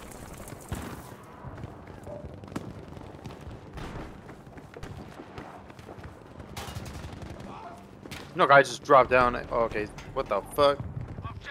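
Footsteps thud quickly on hard ground and metal stairs.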